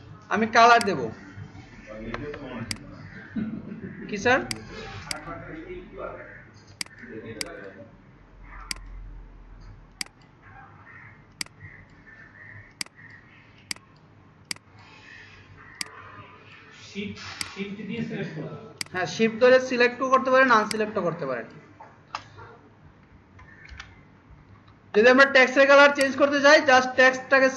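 A computer mouse clicks repeatedly.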